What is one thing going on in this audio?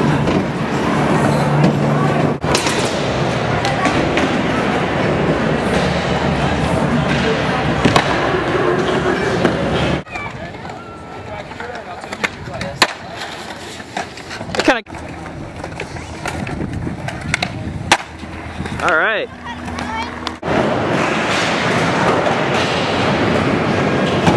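Skateboard wheels roll and rumble over concrete.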